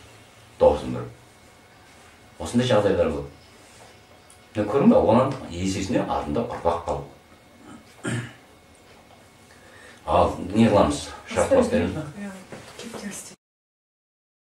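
A man speaks calmly nearby, in short phrases with pauses.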